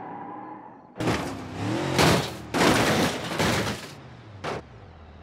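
A car tumbles down a rocky slope with crashing thuds.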